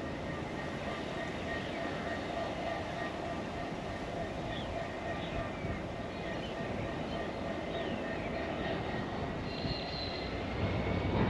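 A long freight train rumbles slowly along the tracks.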